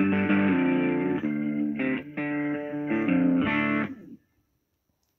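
Music plays from a tablet speaker.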